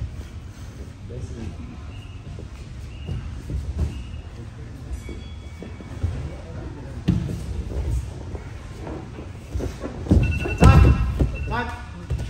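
Two men grapple on a padded mat, bodies thudding and scuffing.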